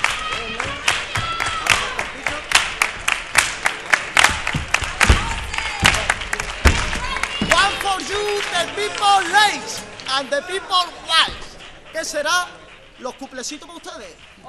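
A group of men and women sing together.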